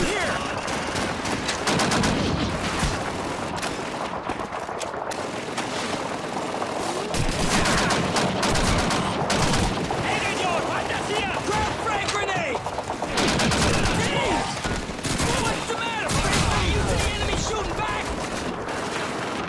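Gunfire cracks and rattles.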